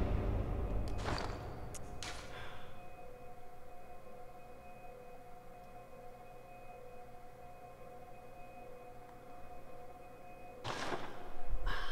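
A soft click sounds as a menu opens and closes.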